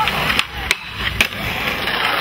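A skateboard clacks sharply against a rail.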